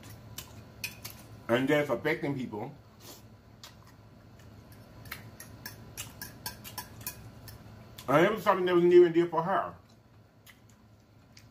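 A man chews food with wet, smacking mouth sounds.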